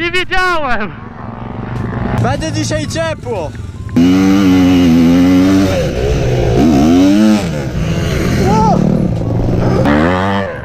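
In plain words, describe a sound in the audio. Dirt bike engines rev loudly and rise and fall in pitch.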